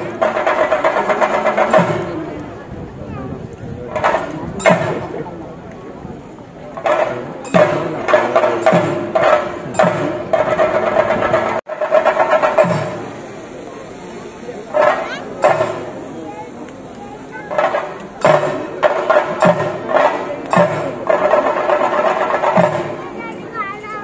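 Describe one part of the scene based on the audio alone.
Drums beat loudly in a fast rhythm outdoors.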